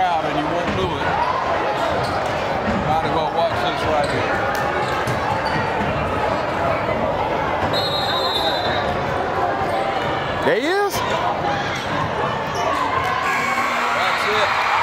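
A crowd cheers and chatters in an echoing hall.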